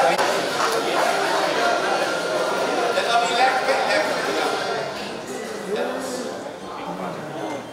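Men and women chatter and call out in a busy, noisy crowd.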